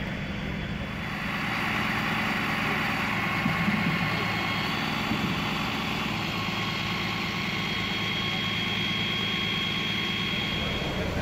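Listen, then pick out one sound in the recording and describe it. A fire engine idles nearby with a steady rumbling hum.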